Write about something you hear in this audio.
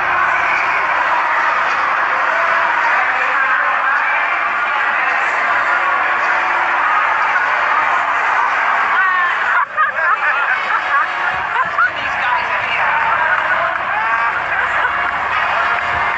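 A crowd chatters and cheers loudly in a large hall.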